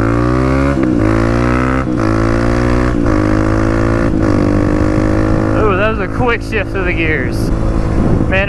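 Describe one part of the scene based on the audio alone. A dirt bike engine revs loudly, climbing in pitch and dropping with each gear shift.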